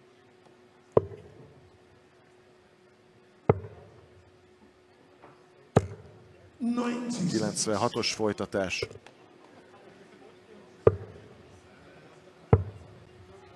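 Darts thud into a dartboard one after another.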